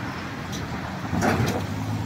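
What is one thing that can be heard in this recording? A tram rolls by.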